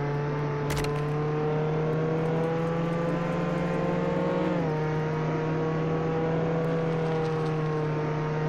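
A car engine hums steadily, rising slowly in pitch and then dropping as it shifts gear.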